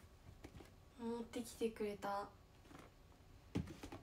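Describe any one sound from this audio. A cardboard box rustles and knocks as it is handled.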